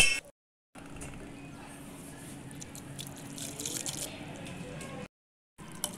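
Noodles slide wetly into a glass bowl.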